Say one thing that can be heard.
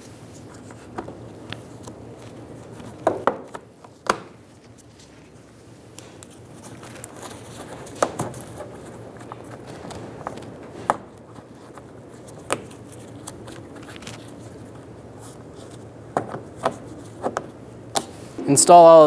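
Plastic trim clips click and pop as they are pried out of a car's plastic fender liner.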